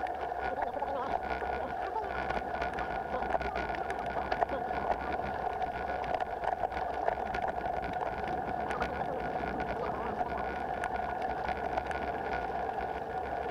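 Bicycle tyres roll and crunch over a gravel track.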